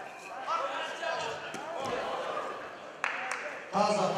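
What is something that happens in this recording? A wrestler thuds onto the mat.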